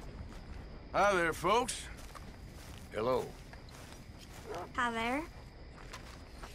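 A man speaks loudly in short, drawn-out calls.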